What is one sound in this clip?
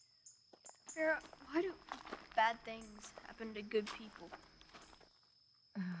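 A woman talks calmly outdoors.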